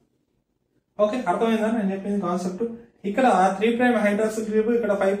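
A young man speaks calmly and clearly close to a microphone.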